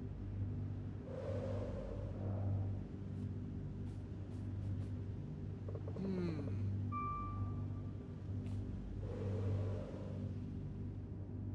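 Wind rushes past in short swells.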